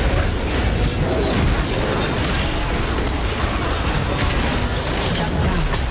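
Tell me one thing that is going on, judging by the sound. Spell effects crackle and clash in a fast fight.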